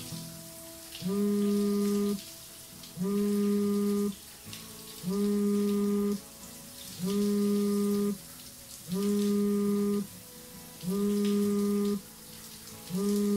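A phone rings with a repeating electronic tone.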